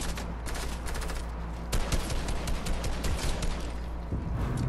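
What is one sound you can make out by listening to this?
Gunshots fire in rapid bursts, close by.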